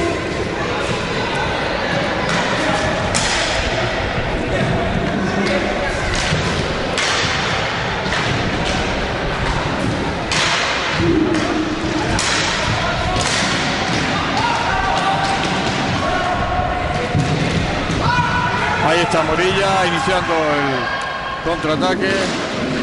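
Roller skate wheels rumble across a wooden floor.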